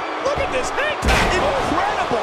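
A wrestler lands on the mat with a heavy thud.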